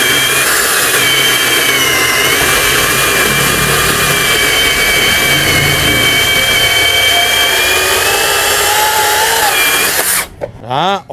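An electric chainsaw whines loudly as it cuts through a log.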